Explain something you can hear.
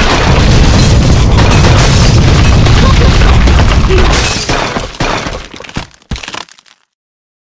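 Wooden and stone blocks crash and tumble down with loud rumbling.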